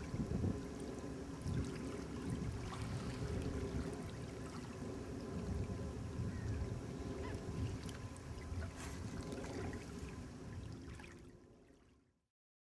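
Small waves lap on a lake.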